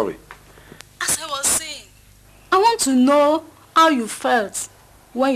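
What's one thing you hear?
A woman speaks with feeling into a phone, close by.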